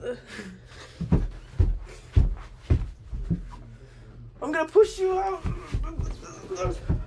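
Feet thump and knock on the floor nearby.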